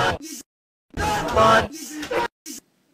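A boy shouts loudly into a microphone.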